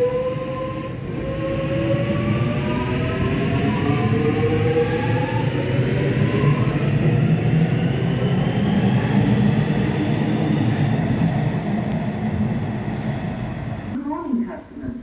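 A train's electric motors whine, rising in pitch as it speeds up.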